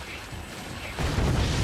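A loud blast booms with rocket fire.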